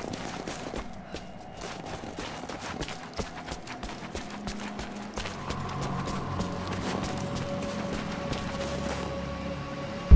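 Footsteps crunch on snow and rock.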